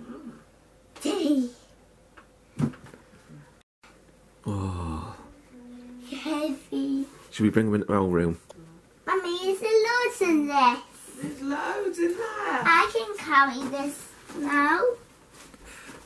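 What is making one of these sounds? A young boy talks and shouts excitedly close by.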